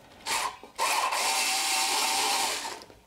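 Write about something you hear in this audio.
A power tool whirs loudly on a bolt.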